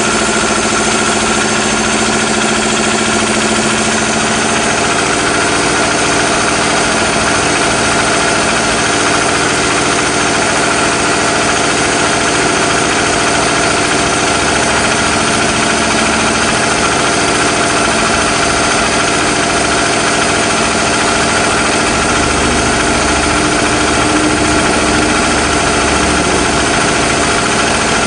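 An engine runs loudly and steadily close by.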